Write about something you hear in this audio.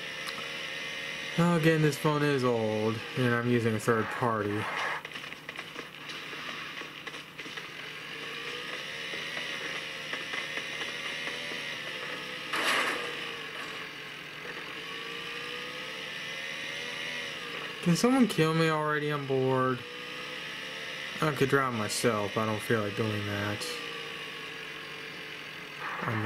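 Game sounds play from a small phone speaker.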